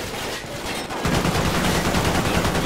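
An explosion booms and roars loudly.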